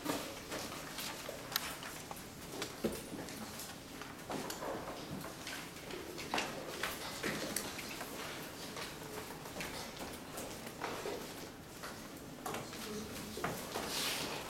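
A woman speaks at a distance in a room with some echo.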